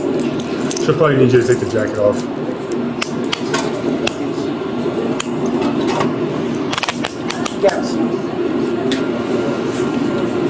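Handcuffs clink and rattle close by.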